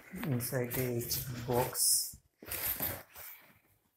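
Plastic bubble wrap rustles and crinkles close by.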